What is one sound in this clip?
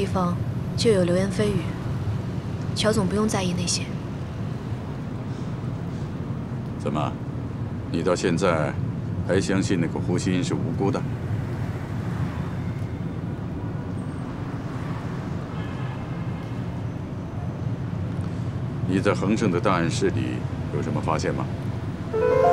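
A young woman speaks calmly and quietly nearby.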